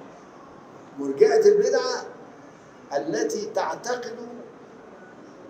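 An elderly man speaks with emphasis into a microphone, in short bursts with pauses.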